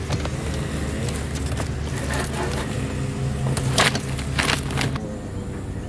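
A hand rattles a metal wire rack among dry debris.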